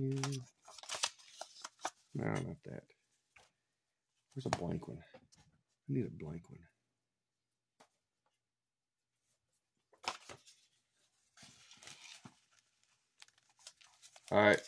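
A foil wrapper crinkles and rustles in someone's hands.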